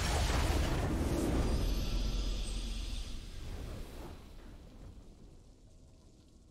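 A victory fanfare swells and fades.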